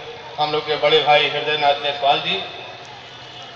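A middle-aged man speaks loudly into a microphone over a loudspeaker.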